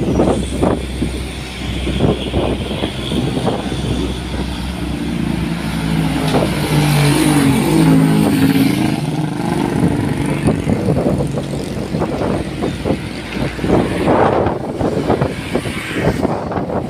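Traffic rumbles past steadily outdoors.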